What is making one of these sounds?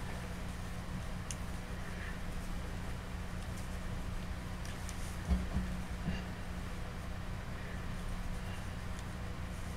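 A sculpting tool scrapes softly on clay.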